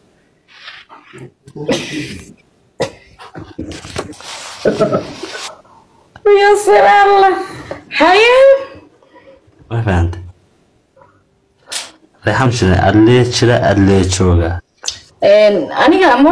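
A young woman sings with feeling, close to a phone microphone.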